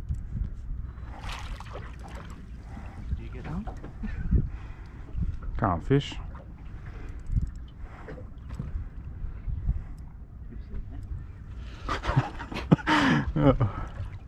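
Water laps gently against a small boat's hull.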